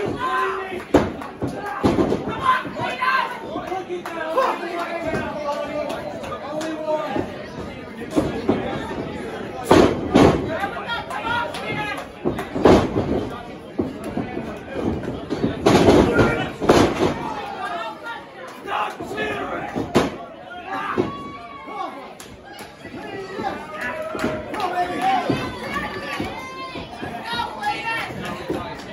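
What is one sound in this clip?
A crowd in a large room shouts and cheers throughout.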